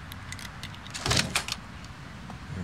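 A door swings open with a creak and thud.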